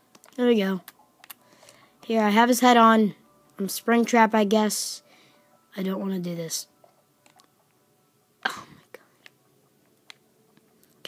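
Fingers press buttons on a handheld game controller.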